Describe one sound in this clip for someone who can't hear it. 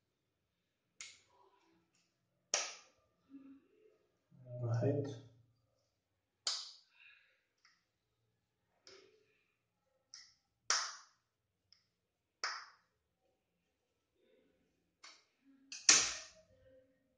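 Small metal parts click and clink as hands handle them.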